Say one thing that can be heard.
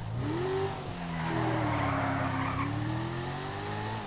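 Tyres screech on asphalt as a car slides through a bend.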